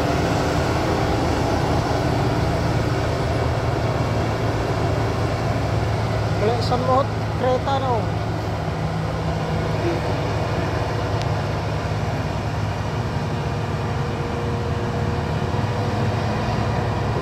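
A heavy truck engine rumbles steadily as the truck climbs a road.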